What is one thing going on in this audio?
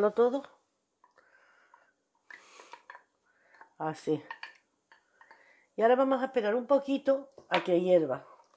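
A wooden spoon scrapes and stirs in a pot.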